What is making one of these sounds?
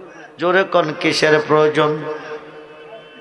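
An elderly man preaches loudly and with animation through a microphone, heard over a loudspeaker.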